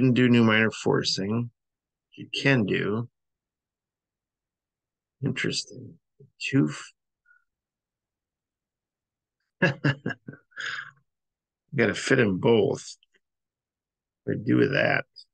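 A man talks calmly into a microphone, pausing between phrases.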